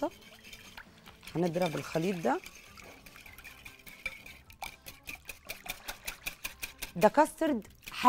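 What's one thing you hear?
A wire whisk beats eggs rapidly against a bowl.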